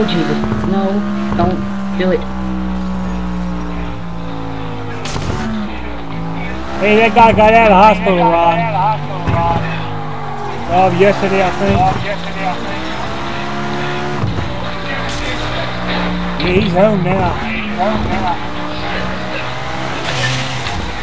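A car engine roars at high revs, rising and falling as the gears change.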